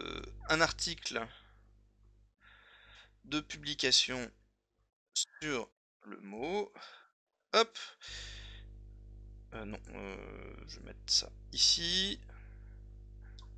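A man talks calmly and closely into a microphone.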